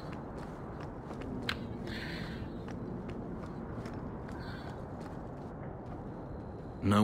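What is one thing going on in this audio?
Footsteps run up stone steps.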